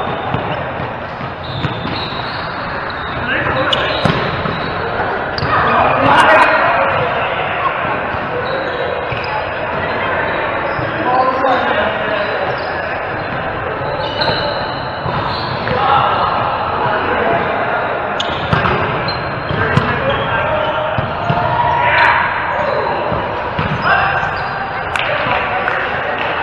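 Volleyball players call out to each other in a large echoing hall.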